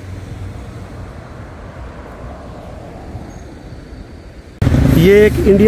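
A car drives past on a nearby street.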